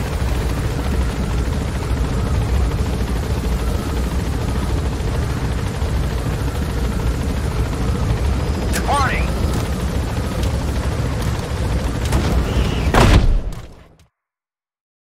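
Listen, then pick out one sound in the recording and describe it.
A helicopter's rotor and engine roar steadily and then fade away.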